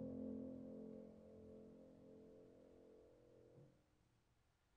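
A woman sings a long, held note.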